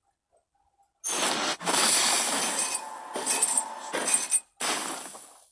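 A game character smashes the ground with a loud crashing whoosh.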